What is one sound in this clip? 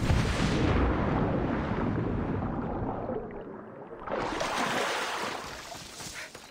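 Water swirls and splashes as a swimmer moves through it.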